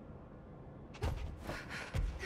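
A character lands from a jump with a thump.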